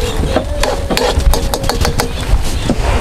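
A spatula scrapes against a metal pan.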